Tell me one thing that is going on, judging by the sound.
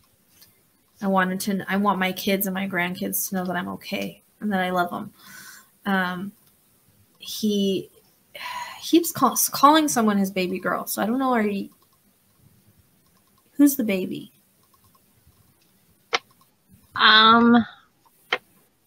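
A woman speaks calmly, heard over an online call.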